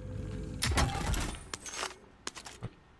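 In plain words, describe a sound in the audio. Metal gear clatters and rattles as an item is picked up.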